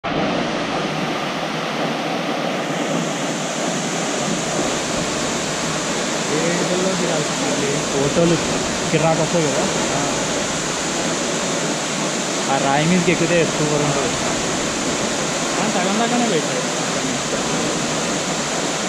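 A waterfall roars steadily outdoors.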